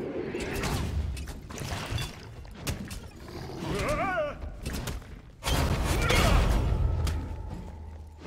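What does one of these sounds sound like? Weapon blows thud and clang in a fight.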